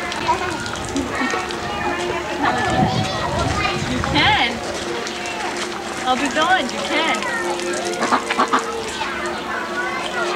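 Ducks quack nearby.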